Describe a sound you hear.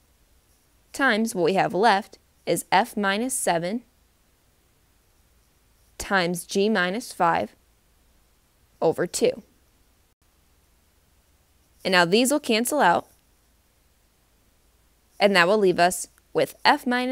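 A young woman explains calmly into a close microphone, in short bursts with pauses.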